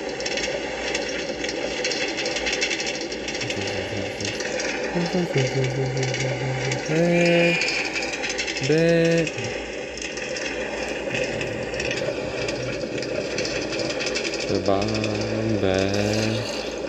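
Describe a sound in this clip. A minecart rattles steadily along rails.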